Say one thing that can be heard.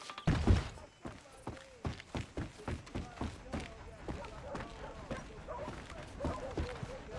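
Footsteps tap across a roof at a steady walking pace.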